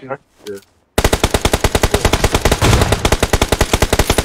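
Rapid gunfire rattles loudly and steadily.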